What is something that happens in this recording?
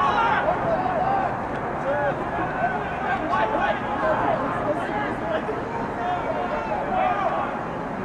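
Young men shout and call out to each other across an open field outdoors.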